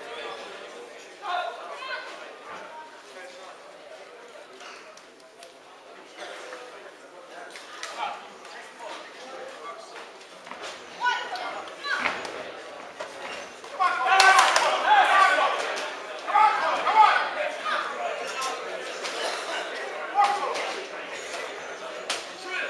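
A crowd shouts and cheers in a large echoing hall.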